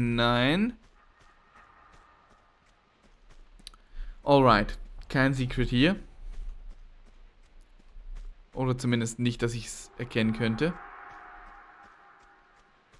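Footsteps run across a wooden floor.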